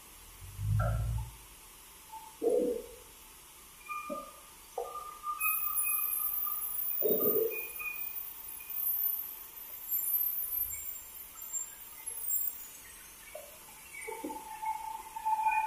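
Heavy timber beams thud and knock against a metal saw bench.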